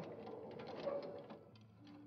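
A cart rattles as it is pushed.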